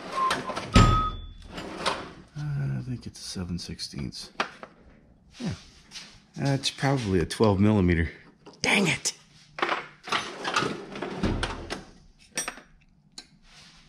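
A metal tool drawer slides open.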